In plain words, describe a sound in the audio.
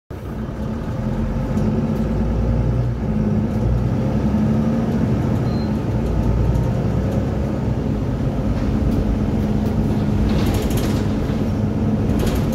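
A diesel city bus engine drones under way, heard from inside the cabin.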